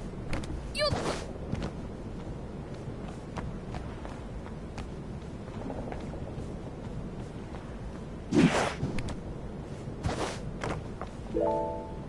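Quick footsteps patter on a wooden deck.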